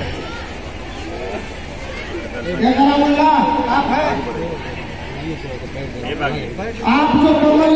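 A crowd of men chatters in the background.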